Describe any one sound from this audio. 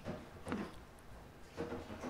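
Fingers tap lightly on a laptop trackpad.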